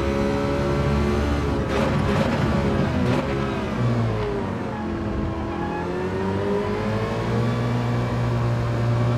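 A racing car engine roars, dropping in pitch as the car brakes and then climbing again as it speeds up.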